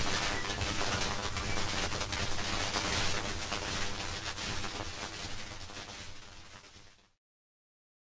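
Music plays from an old gramophone record and fades out.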